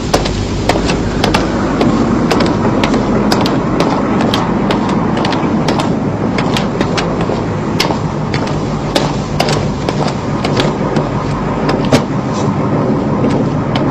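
A car engine rumbles as a car approaches slowly.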